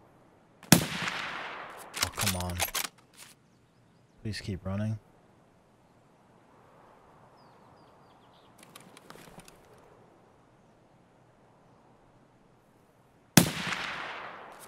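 A sniper rifle fires a shot that echoes across open ground.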